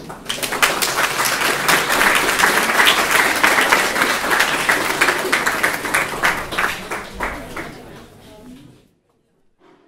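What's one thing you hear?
An audience applauds loudly in a large room, then the clapping fades.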